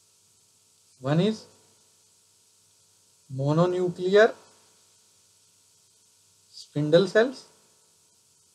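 A man speaks calmly into a close microphone in short phrases.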